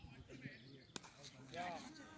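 A cricket bat strikes a ball outdoors.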